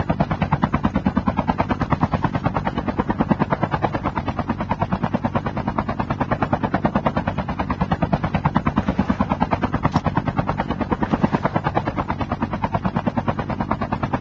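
A helicopter's rotor thumps rapidly and steadily close by.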